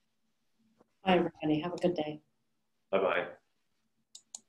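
A woman speaks briefly and with animation over an online call.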